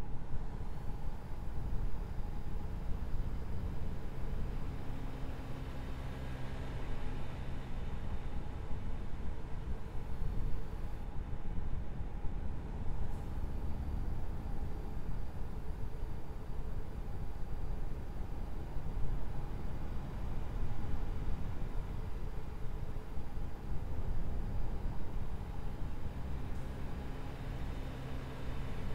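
Tyres roll on a highway.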